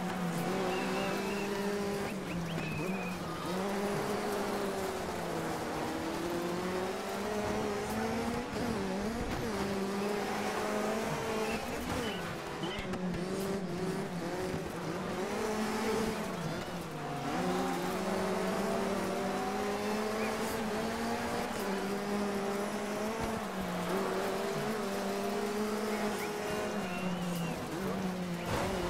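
A racing car engine roars steadily, its pitch rising and falling with gear changes.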